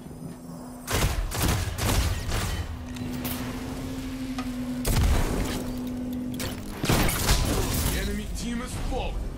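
Guns fire in loud, sharp bursts.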